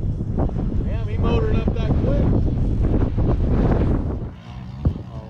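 A dirt bike engine idles close by.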